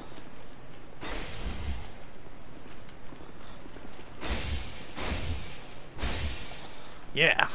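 A heavy weapon swings with a loud whoosh and thuds.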